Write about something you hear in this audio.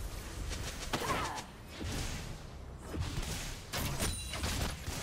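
Video game weapons clash with sharp hits.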